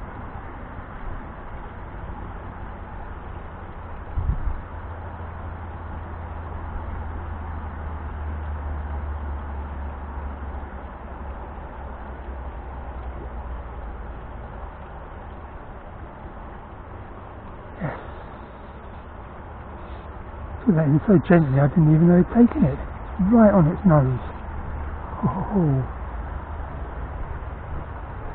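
Wind blows against a microphone outdoors.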